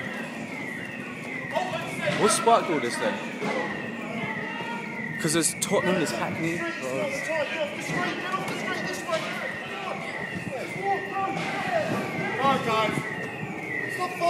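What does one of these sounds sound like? Men shout and call out nearby in a street.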